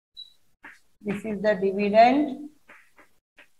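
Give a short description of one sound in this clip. A woman speaks clearly and calmly nearby.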